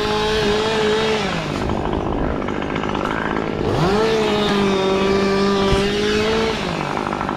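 Pine branches rustle and bark scrapes close by.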